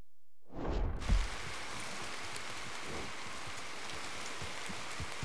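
Steady rain falls outdoors.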